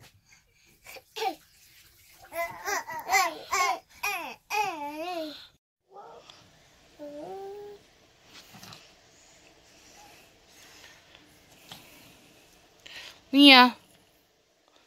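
Young toddlers babble and squeal close by.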